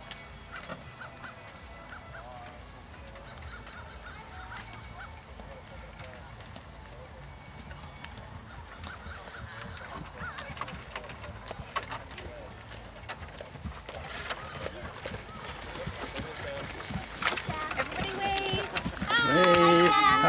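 Wagon wheels rumble and creak over a field.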